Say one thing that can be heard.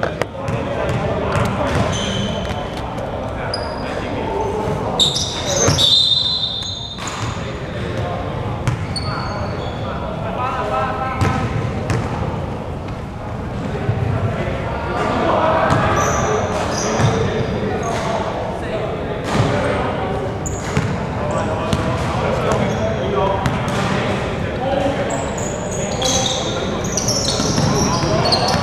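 Young men call out to each other during a game.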